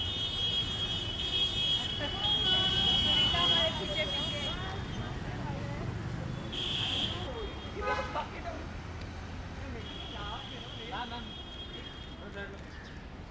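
Traffic rumbles along a busy street.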